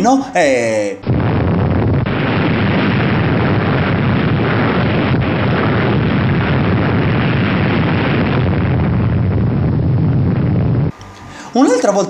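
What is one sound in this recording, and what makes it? A huge explosion rumbles and roars steadily.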